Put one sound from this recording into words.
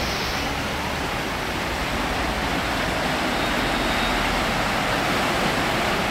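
A car drives through deep floodwater, spraying water.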